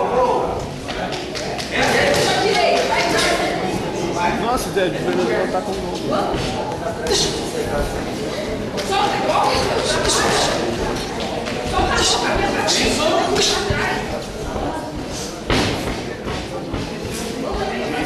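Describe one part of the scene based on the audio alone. Boxing gloves thump against each other in quick punches.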